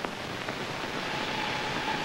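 A man speaks in alarm through an old, hissy film soundtrack.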